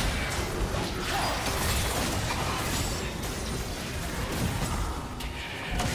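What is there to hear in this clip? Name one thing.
Game spell effects whoosh and crackle during a battle.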